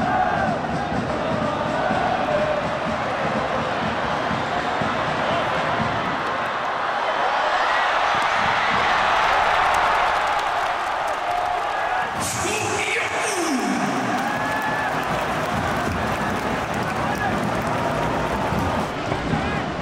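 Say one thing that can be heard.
A large stadium crowd chants and cheers, echoing loudly.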